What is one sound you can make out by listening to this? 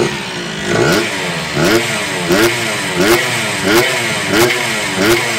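A small scooter engine revs up and down again and again.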